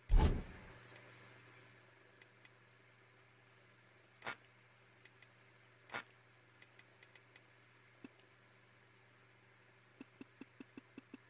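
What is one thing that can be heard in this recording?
Short menu blips tick one after another.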